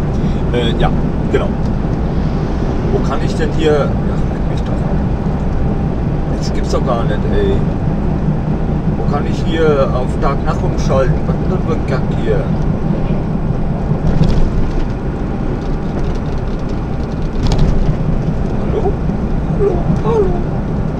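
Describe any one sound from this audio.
Tyres roar on the road beneath a truck cab.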